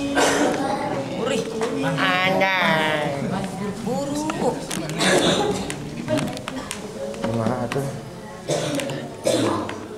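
Teenage boys talk and laugh close by.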